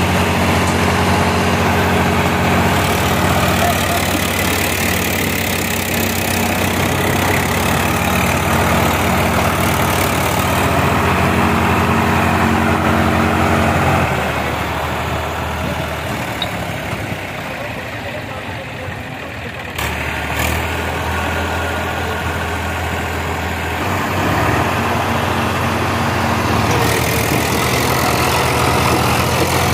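A tractor engine chugs loudly close by.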